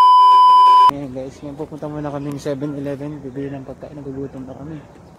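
A young man talks calmly close by.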